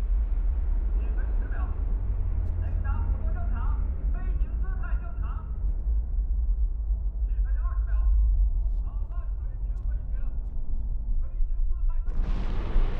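A man calls out calmly over a radio.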